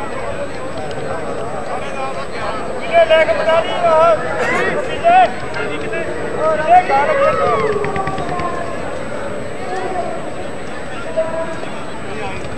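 A large crowd murmurs outdoors.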